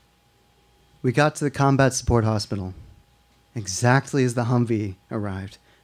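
A young man speaks calmly through a microphone, reading aloud.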